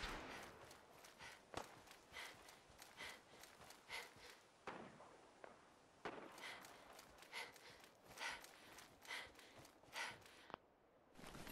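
Footsteps crunch over dry ground outdoors.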